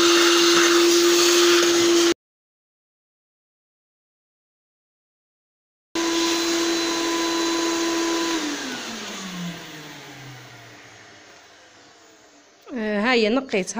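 A vacuum cleaner hums loudly, then slowly winds down.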